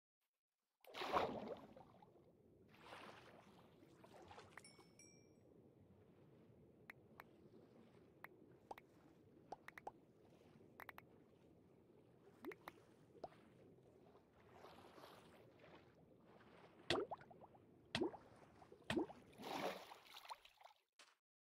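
A muffled underwater drone fills the sound.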